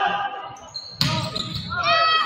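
A volleyball is struck with a sharp smack in a large echoing gym.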